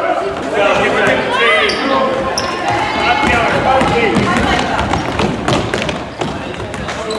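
Children shout and cheer excitedly in a large echoing hall.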